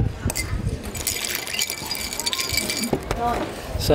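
A spoon stirs and clinks against ice in a glass.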